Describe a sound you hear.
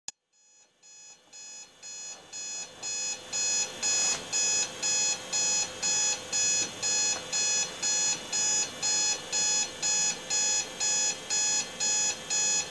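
An alarm beeps in a quick, steady repeating pattern, growing louder at first.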